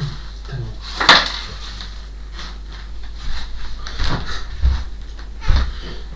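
Items clatter as a man handles things on a shelf.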